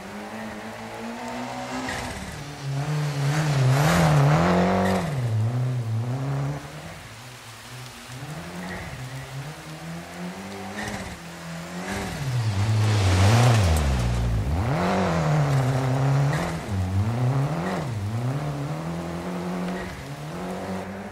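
A rally car engine revs hard, rising and falling as it shifts gears.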